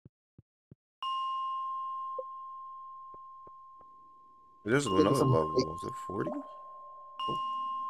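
A bright ringing tone sounds suddenly and slowly fades.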